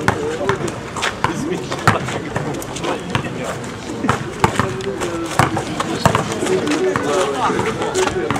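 A basketball bounces sharply on a hard outdoor court.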